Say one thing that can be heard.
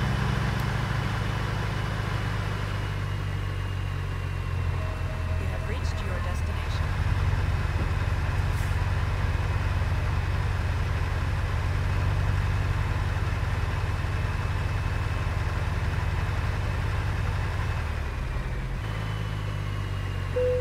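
A truck's diesel engine rumbles steadily at low speed.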